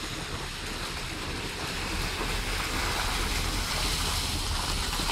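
A car drives slowly through water, tyres splashing.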